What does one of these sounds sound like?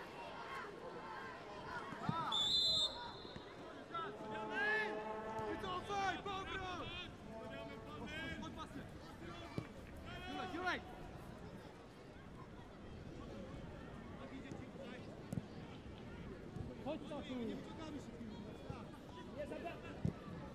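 A stadium crowd murmurs and chants steadily in the distance.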